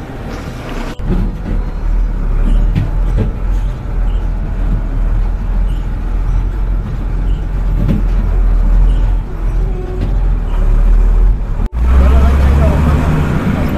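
A truck engine drones loudly from inside the cab.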